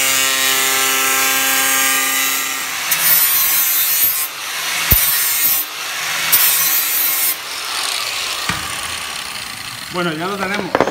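An angle grinder whines loudly as it cuts metal.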